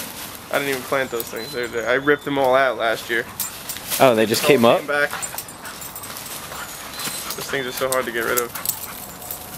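A dog yowls and growls playfully in loud bursts close by.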